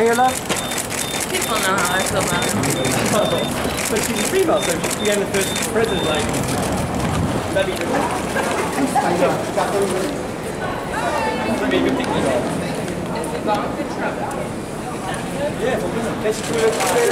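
Several men call out and talk over one another close by.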